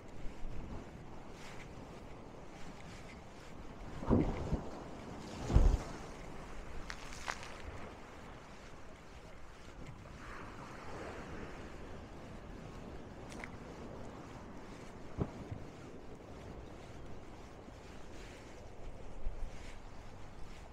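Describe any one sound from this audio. Small waves wash gently against a sea wall.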